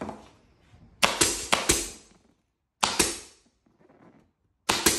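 A pneumatic staple gun fires with sharp snaps and bursts of air hissing.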